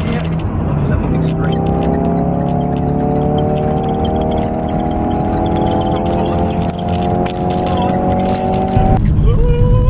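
A car engine hums and rises in pitch as the car speeds up.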